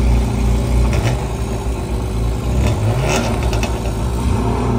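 Exhaust pops and crackles from a sports car.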